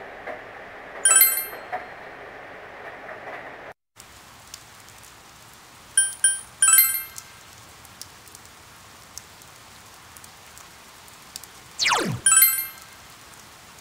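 Short bright electronic chimes ring out a few times.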